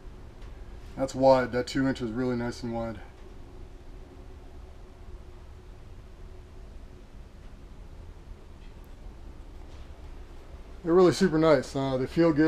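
A middle-aged man talks casually, close to the microphone.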